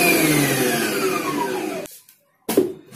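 A blender motor whirs and winds down.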